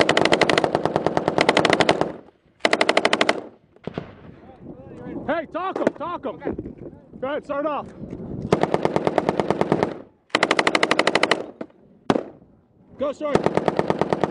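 A machine gun fires rapid bursts close by.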